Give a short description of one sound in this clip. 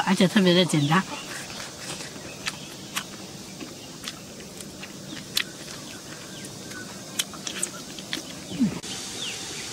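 A young woman chews and slurps food loudly close by.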